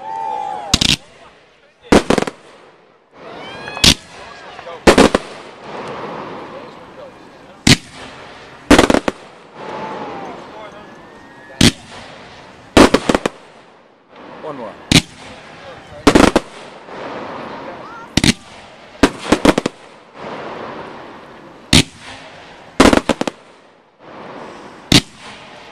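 Aerial fireworks burst with sharp bangs.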